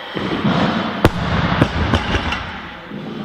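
A heavy barbell crashes onto the floor and bounces with loud thuds in an echoing hall.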